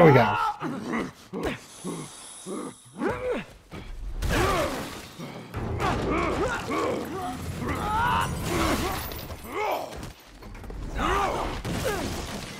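Heavy blows and thuds land in a scuffle.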